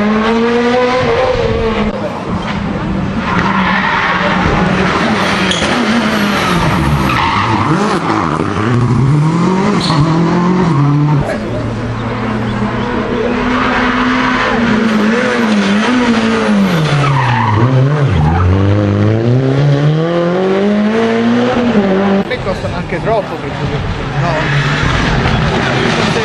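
Rally car engines roar and rev hard, rising and falling with each gear change.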